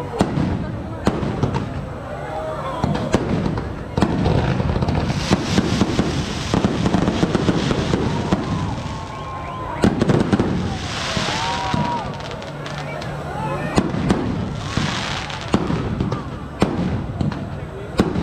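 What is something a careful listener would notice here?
A crowd of people cheers and shouts.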